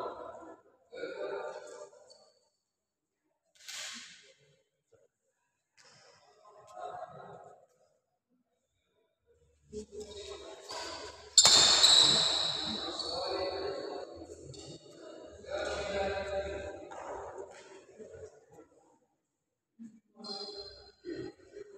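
Sports shoes squeak on a court floor.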